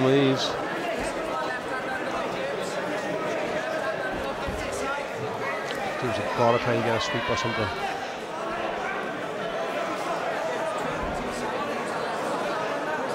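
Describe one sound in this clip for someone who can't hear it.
A crowd murmurs and shouts throughout a large echoing hall.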